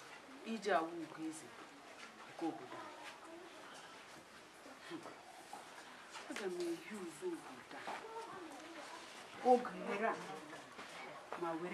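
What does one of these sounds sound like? A young woman talks to herself with animation, close by.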